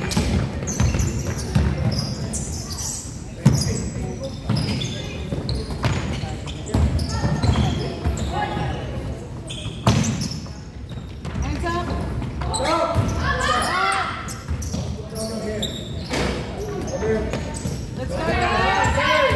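Young girls shout and call out to each other during play.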